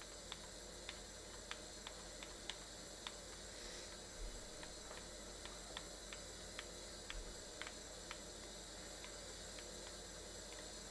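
A pressure washer sprays a steady hissing jet of water.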